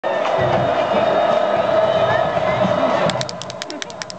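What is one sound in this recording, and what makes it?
A crowd cheers and roars in a stadium.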